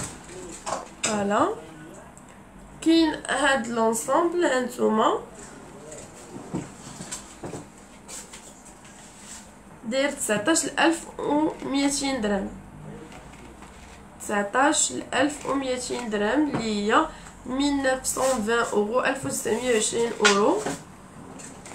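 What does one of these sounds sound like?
A young woman talks close to the microphone in a calm, lively way.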